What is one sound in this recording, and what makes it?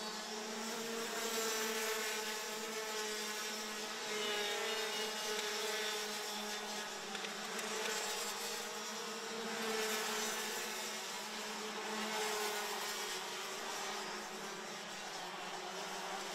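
Small racing engines whine loudly and steadily.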